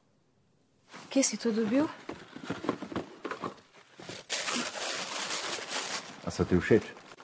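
Tissue paper rustles as a man unwraps a gift.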